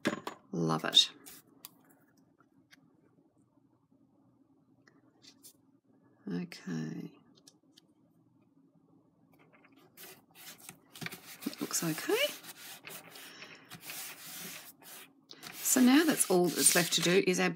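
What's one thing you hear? Paper rustles and slides across a cutting mat.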